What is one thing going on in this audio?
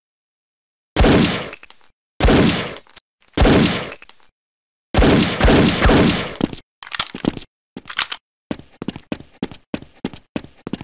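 A pistol fires single loud shots that echo.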